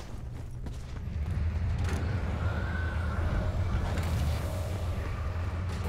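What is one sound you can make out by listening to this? A deep engine rumbles overhead and grows louder.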